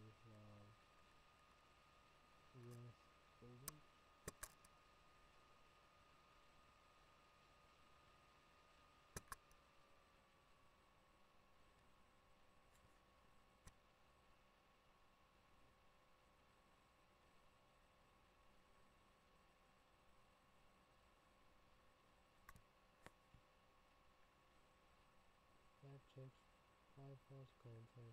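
A young man speaks quietly and slowly into a computer microphone close by.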